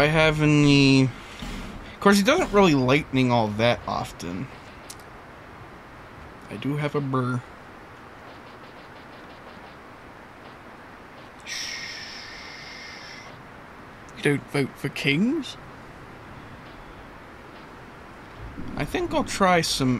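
A man talks casually over a microphone.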